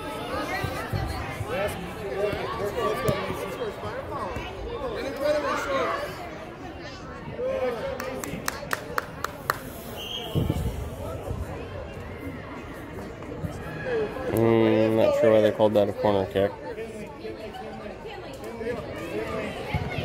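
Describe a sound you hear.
Adult spectators shout and cheer nearby in a large echoing hall.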